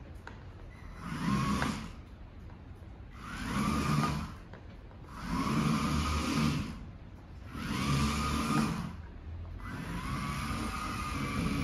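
A small toy car's electric motor whirs in repeated bursts.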